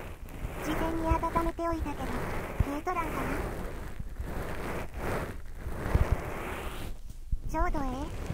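A young woman speaks softly and gently, close to the microphone.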